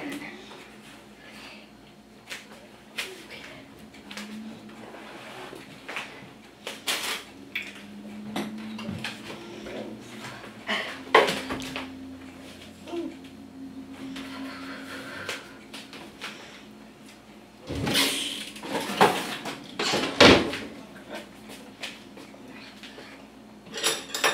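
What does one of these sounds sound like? Utensils clink and knock on a counter.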